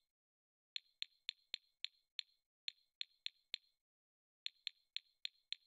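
Short, sharp interface clicks sound in quick bursts.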